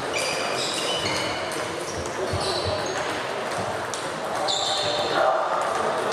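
A table tennis ball clicks back and forth off paddles and a table in a large echoing hall.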